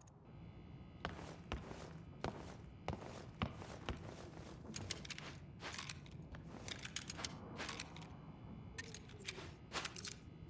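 Footsteps tread on a hard floor indoors.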